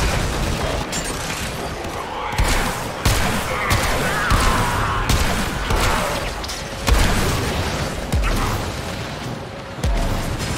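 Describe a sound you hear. Gunfire and blasts boom repeatedly.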